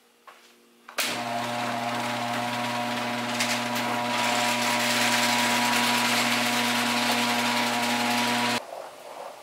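A garage door opener hums and rattles as a door rolls up.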